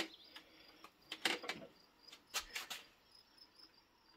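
A grill lid thumps shut.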